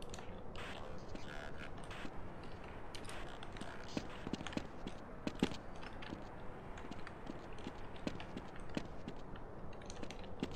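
Footsteps tap on a hard floor at a steady walking pace.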